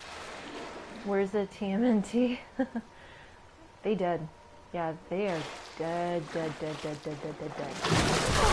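A young woman speaks excitedly close to a microphone.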